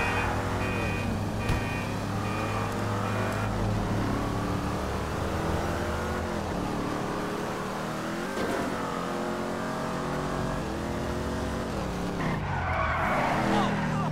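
A car engine revs and drops in pitch as the car shifts through gears.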